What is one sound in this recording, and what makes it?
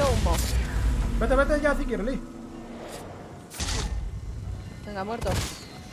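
Swords clash and explosions boom.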